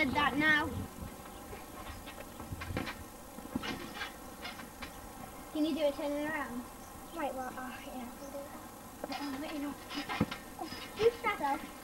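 Feet thump on a trampoline.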